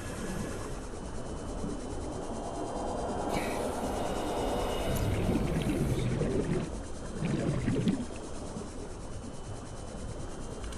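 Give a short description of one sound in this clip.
A small underwater vehicle hums steadily as it glides through water.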